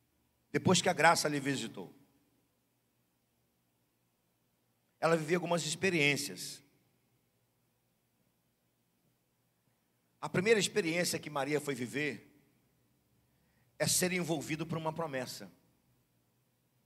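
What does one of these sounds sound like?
A middle-aged man speaks into a microphone in short, calm phrases with pauses between them.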